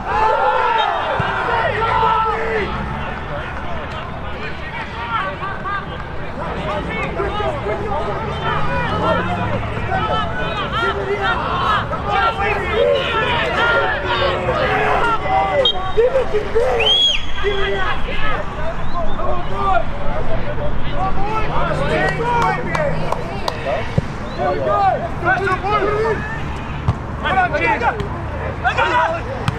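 Men shout to each other in the distance, outdoors.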